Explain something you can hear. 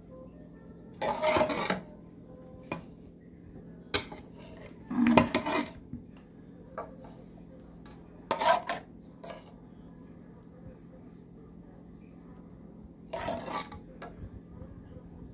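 A spoon scrapes and clinks against a metal pan.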